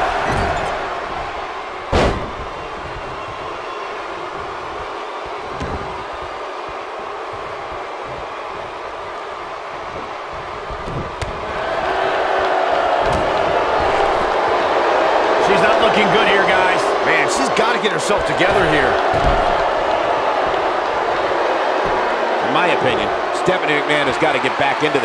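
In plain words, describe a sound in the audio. A large crowd cheers and roars in a big arena, growing louder partway through.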